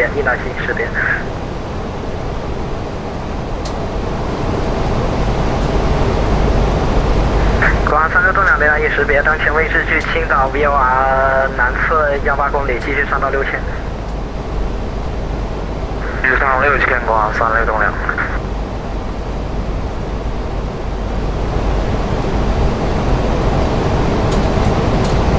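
An airliner's engines and rushing air roar steadily in the cockpit.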